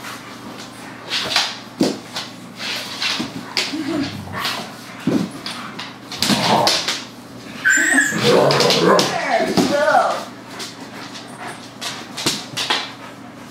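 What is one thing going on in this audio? Dog claws click and scrabble on a hard floor.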